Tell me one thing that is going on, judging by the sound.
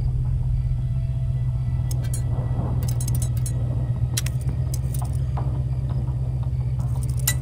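A metal pick clicks and scrapes inside a lock.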